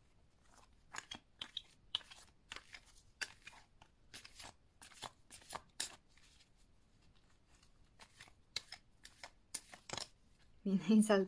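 Playing cards riffle and snap as they are shuffled by hand.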